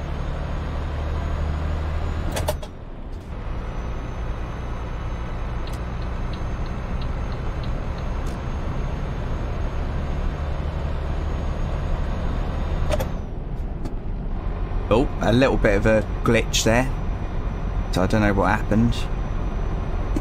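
A truck engine hums steadily as it drives.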